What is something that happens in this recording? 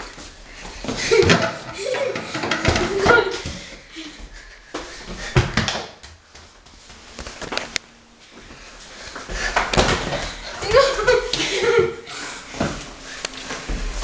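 Young boys shout and laugh excitedly nearby.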